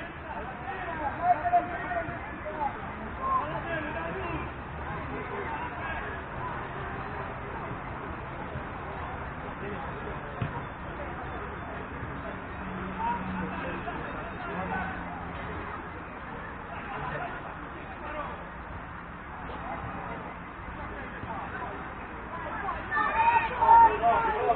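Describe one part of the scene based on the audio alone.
Young men shout to each other from some distance outdoors.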